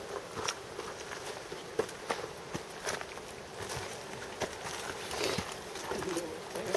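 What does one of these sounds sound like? Footsteps crunch on a rocky dirt trail.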